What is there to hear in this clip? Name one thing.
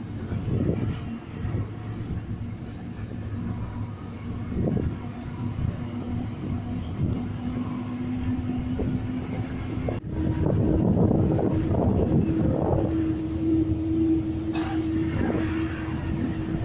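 A bus engine hums steadily from inside the moving vehicle.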